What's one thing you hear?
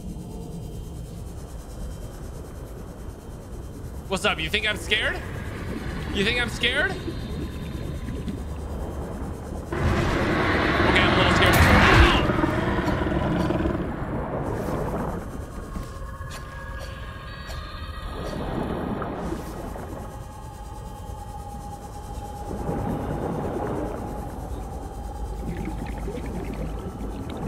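A deep underwater rumble and bubbling from a game plays throughout.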